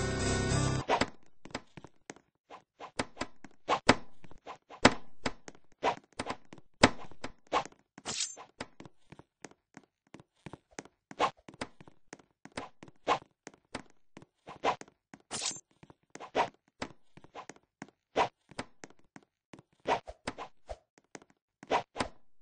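Quick footsteps patter on the ground.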